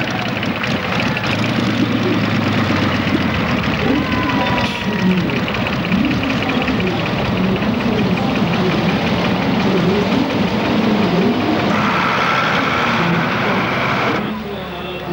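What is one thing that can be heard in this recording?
A big tractor engine roars loudly and steadily close by.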